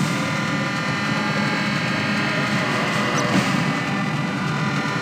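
A ship's engine rumbles steadily as the boat moves through water.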